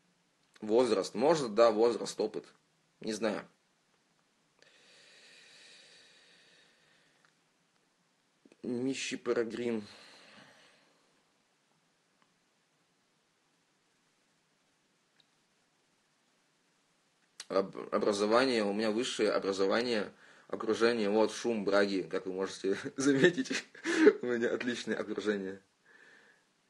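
A young man talks casually and close up into a phone microphone, in bursts with long pauses.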